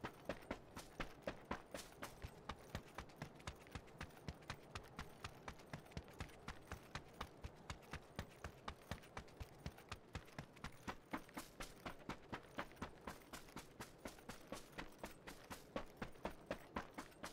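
Footsteps run quickly and steadily over the ground.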